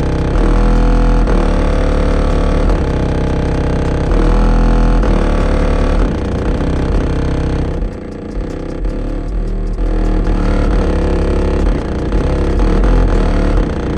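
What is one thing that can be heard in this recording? Loud, deep bass music booms from a car's stereo.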